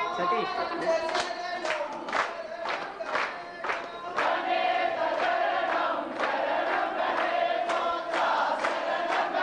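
Men clap their hands in rhythm.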